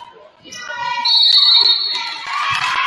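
A referee blows a short shrill whistle.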